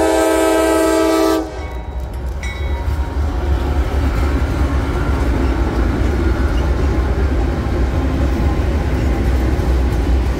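Diesel locomotives rumble past loudly.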